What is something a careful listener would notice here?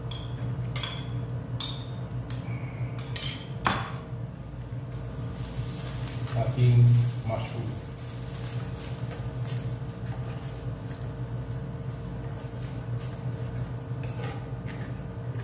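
A spoon scrapes and clinks against a metal pan.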